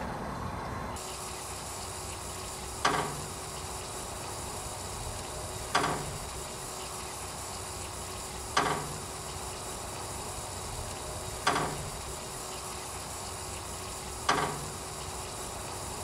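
Water sprays and hisses steadily.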